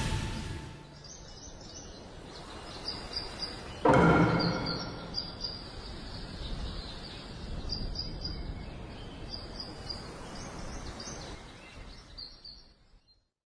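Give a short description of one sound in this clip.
Quiet, tinkling game music plays softly.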